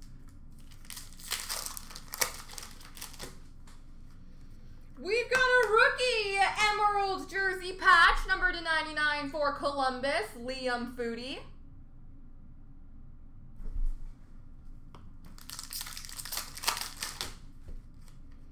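Plastic card wrappers crinkle and rustle in hands.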